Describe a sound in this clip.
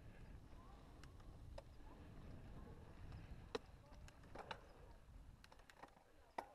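Small stones click and pop under bike tyres.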